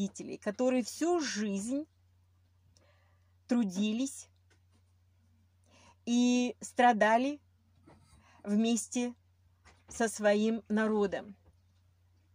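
A middle-aged woman speaks calmly and close to the microphone, in short phrases with pauses.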